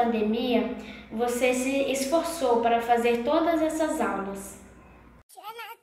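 A young boy speaks calmly and close by.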